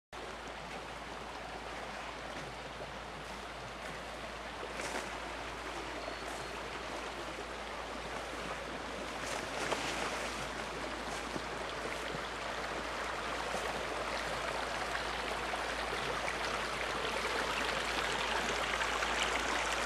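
A stream of water rushes and splashes over rocks, growing louder.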